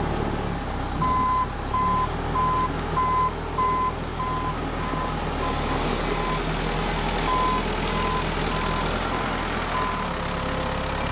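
A tractor's reversing alarm beeps in a steady rhythm.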